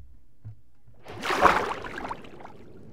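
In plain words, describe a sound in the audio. A splash as something plunges into water.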